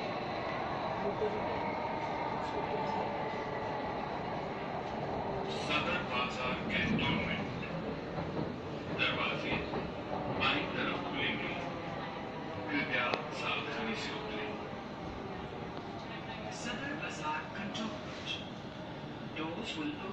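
A train rumbles and rattles steadily along the track.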